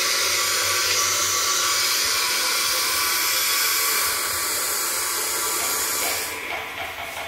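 Water gushes from a tap into a metal sink.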